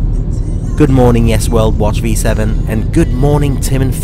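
A car engine hums while driving on a road.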